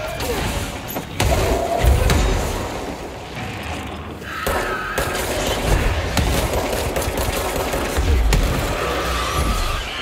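Explosions boom and debris crashes.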